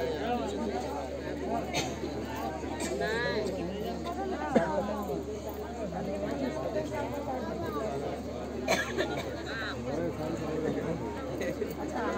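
A large crowd of men and women murmurs and chatters nearby.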